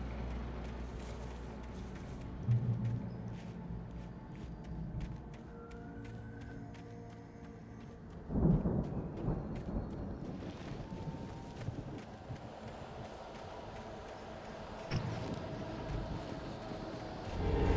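Footsteps run through undergrowth.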